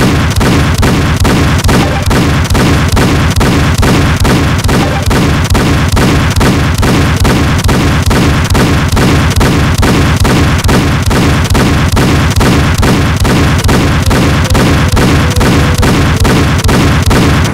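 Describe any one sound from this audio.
A heavy gun fires rapid, evenly spaced blasts.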